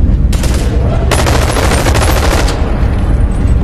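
An explosion bursts with a loud roar.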